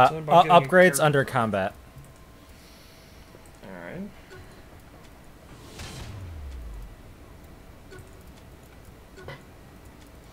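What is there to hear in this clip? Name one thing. Soft game menu clicks sound now and then.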